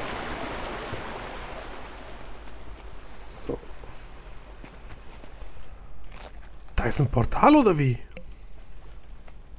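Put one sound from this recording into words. Footsteps pad softly over grass.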